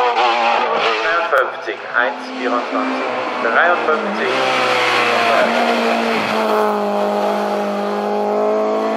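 A small rally car engine buzzes and revs hard as it passes close by.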